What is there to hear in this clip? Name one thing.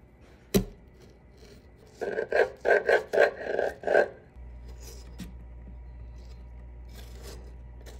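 A knife slices through a thick, crisp plant leaf.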